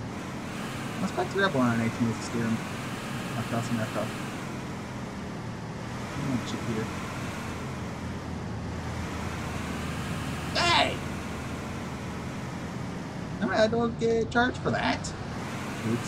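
A man talks casually into a microphone, close by.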